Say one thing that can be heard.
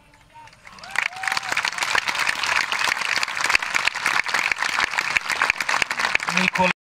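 A large crowd claps and cheers.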